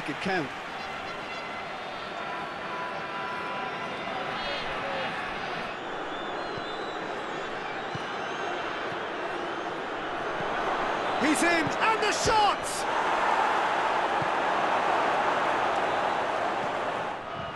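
A large stadium crowd roars and chants steadily, swelling louder near the end.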